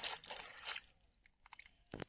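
Water trickles and splashes into a bowl.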